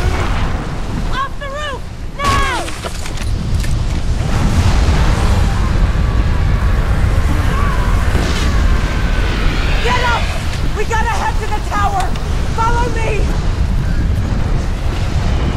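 Rockets whoosh past overhead.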